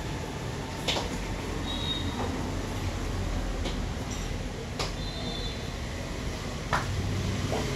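Small items knock and clatter nearby.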